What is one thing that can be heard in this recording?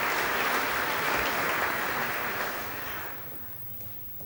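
An audience applauds in a large echoing hall, then fades.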